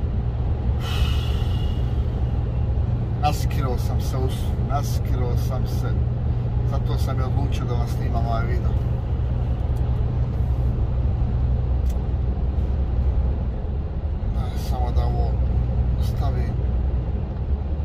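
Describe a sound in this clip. A truck engine hums steadily with road rumble from inside the cab.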